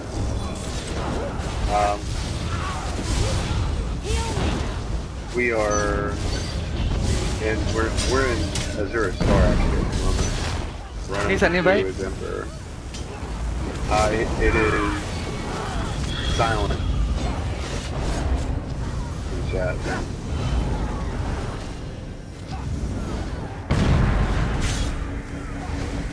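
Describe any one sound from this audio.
Lightning crackles and zaps sharply.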